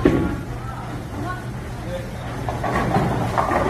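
A bowling ball rumbles down a lane in an echoing hall.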